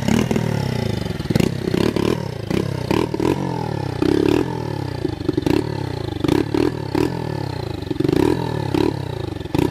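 A small motorbike engine sputters and revs in repeated bursts close by.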